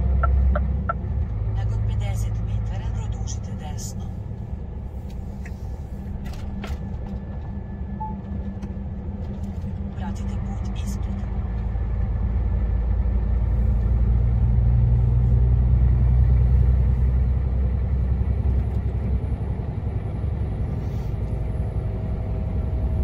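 A car engine hums steadily as the car drives along, swelling louder for a while.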